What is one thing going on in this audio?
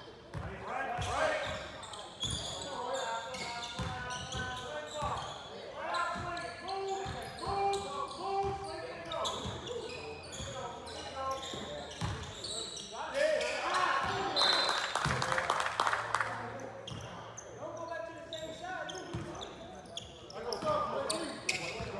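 A basketball bounces on a gym floor.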